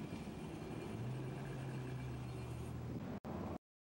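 A car engine hums nearby.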